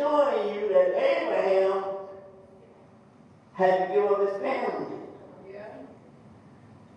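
An elderly man speaks with animation through a microphone, in bursts with pauses.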